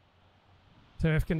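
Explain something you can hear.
A middle-aged man speaks close into a microphone.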